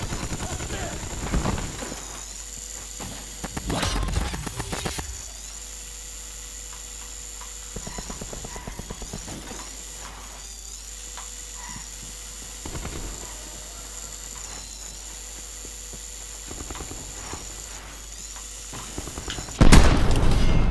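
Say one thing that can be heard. A small toy car's motor whirs steadily.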